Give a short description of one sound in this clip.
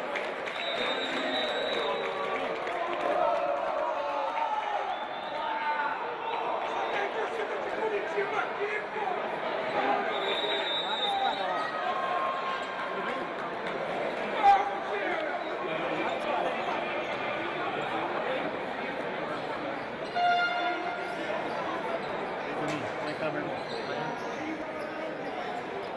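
A crowd of spectators chatters and cheers throughout in a large echoing hall.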